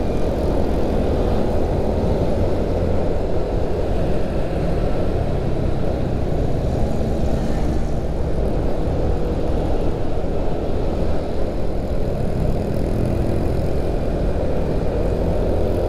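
Wind buffets loudly against a microphone on a moving motorcycle.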